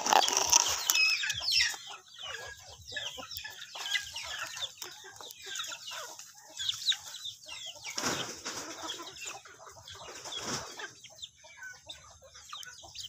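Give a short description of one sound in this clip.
Chickens cluck and chirp nearby outdoors.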